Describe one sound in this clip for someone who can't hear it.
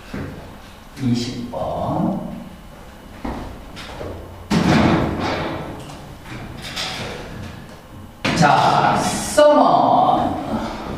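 A young man speaks, heard close by.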